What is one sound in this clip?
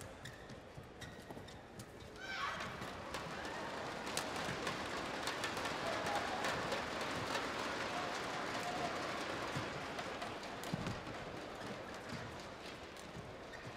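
Shuttlecock hits from rackets crack back and forth in a rally.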